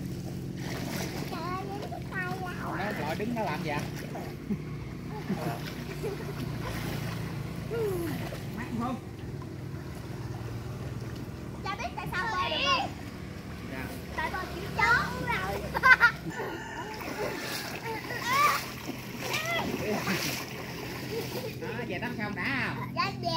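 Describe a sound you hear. Water splashes as swimmers paddle.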